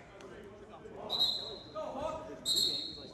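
A group of young men shout together in unison.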